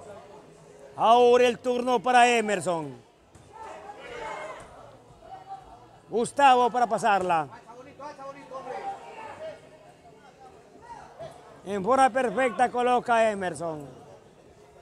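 A crowd of men shouts and cheers loudly outdoors in bursts.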